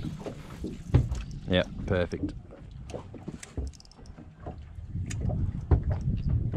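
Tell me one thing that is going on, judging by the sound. Water laps and splashes against the hull of a small boat.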